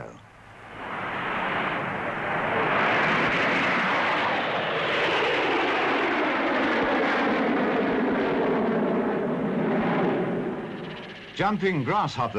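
Propeller aircraft roar overhead in a loud, steady drone.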